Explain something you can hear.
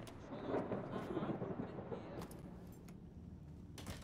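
A door thuds shut.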